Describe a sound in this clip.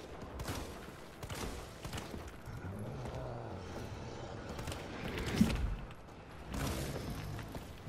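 A handgun fires repeated sharp shots.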